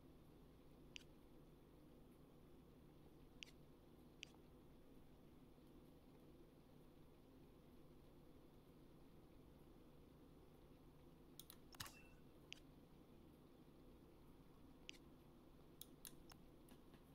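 Menu clicks tick softly now and then.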